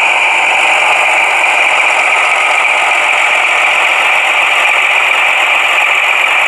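A small model locomotive whirs steadily as it rolls slowly along the track.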